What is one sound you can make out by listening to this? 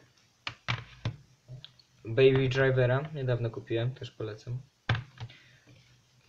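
Plastic disc cases clack and tap as a hand handles them.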